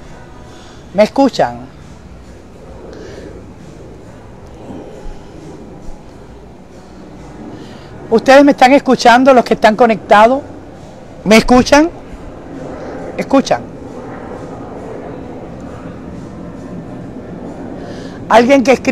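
A middle-aged woman speaks with animation close to a microphone, in short bursts.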